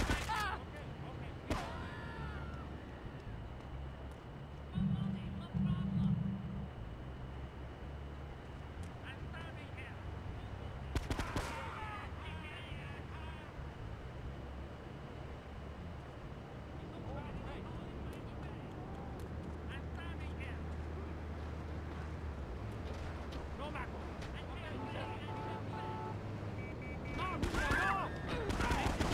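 Gunshots ring out sharply a few times.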